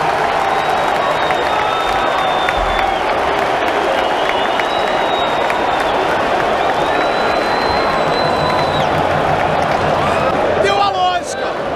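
A large crowd of football fans chants in a large stadium.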